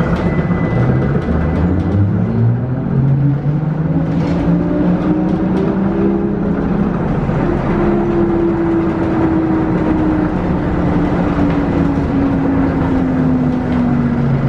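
A vehicle's motor whines and rises in pitch as it speeds up.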